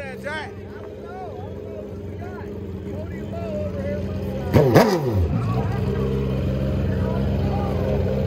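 A motorcycle engine rumbles nearby.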